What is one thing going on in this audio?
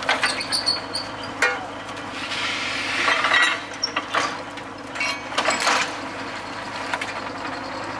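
Metal tools clank and knock against the rig.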